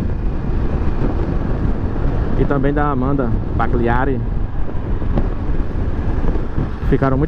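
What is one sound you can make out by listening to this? A parallel-twin motorcycle engine hums while cruising.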